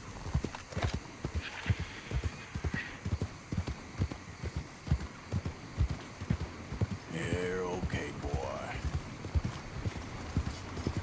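Horse hooves thud steadily on a muddy track.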